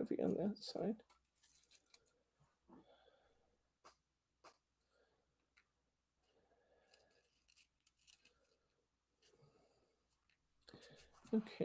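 Paper pieces rustle and tap softly under fingers.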